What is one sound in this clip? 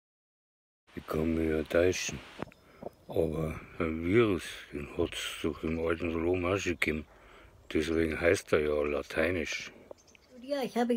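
A man talks close by in a low, calm voice.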